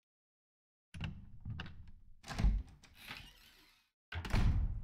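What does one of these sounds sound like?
A heavy wooden door creaks slowly open.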